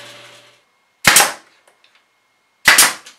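A nail gun fires with sharp bangs.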